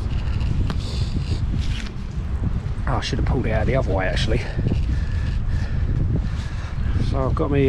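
Wire scrapes and creaks as hands twist it.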